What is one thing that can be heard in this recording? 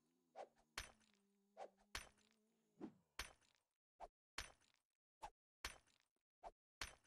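A pickaxe strikes a brick wall again and again with sharp knocks.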